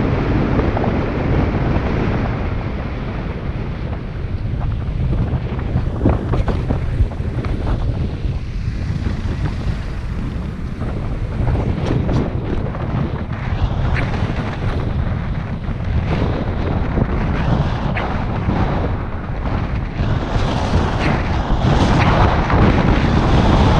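Wind buffets and rumbles loudly against a moving car.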